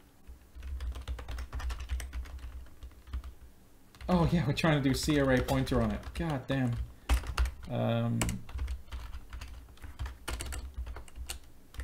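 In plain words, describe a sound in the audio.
Keys clatter rapidly on a keyboard.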